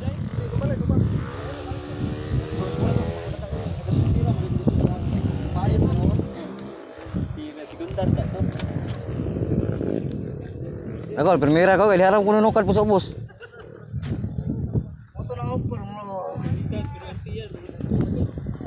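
Several men and boys talk and call out loudly outdoors.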